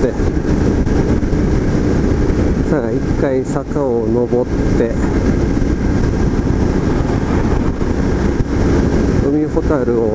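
A motorcycle engine hums steadily at cruising speed.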